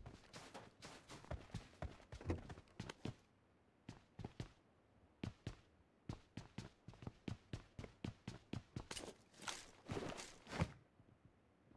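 Footsteps patter quickly on hard floors.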